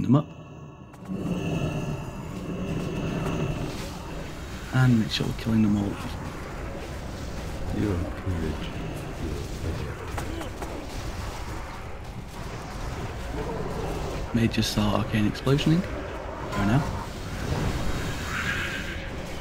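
Game combat sounds clash and burst with magic effects.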